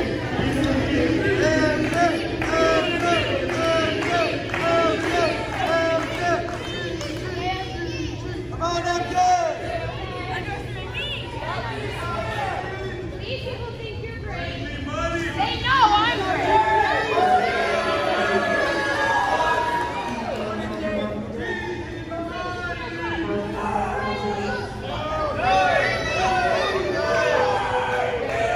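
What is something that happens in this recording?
A crowd of men and women cheers and shouts in a large echoing hall.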